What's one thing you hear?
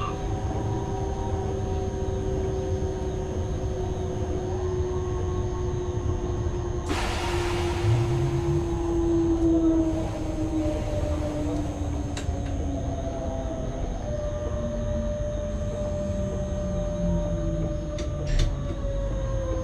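A train's electric motors hum and whine steadily as it rolls along the track.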